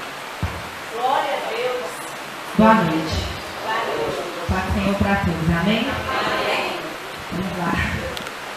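A young woman speaks calmly into a microphone, heard through loudspeakers.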